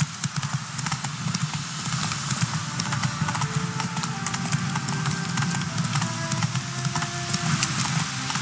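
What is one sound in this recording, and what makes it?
Horse hooves gallop steadily on a dirt path.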